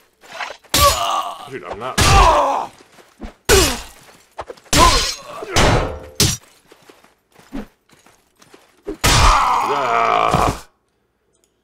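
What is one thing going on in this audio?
Swords clash and strike with loud, sharp hits.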